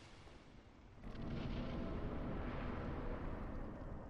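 A deep magical whoosh swells up and lingers.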